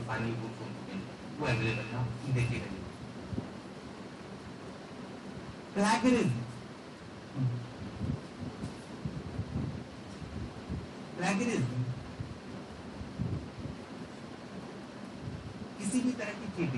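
A man speaks with animation, with pauses between phrases, in a room that echoes a little.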